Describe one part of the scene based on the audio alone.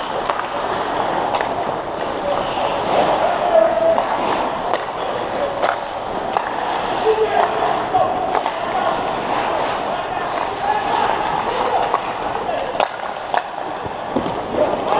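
Young men shout to each other from a distance, echoing.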